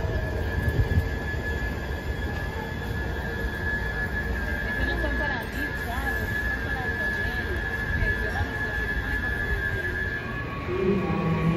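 A train idles with a low hum beside an outdoor platform.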